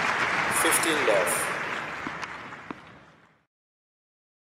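A crowd applauds and cheers, then fades away.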